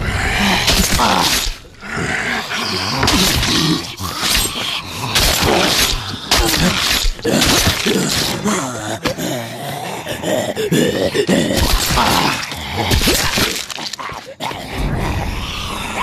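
Fists thud against flesh in a scuffle.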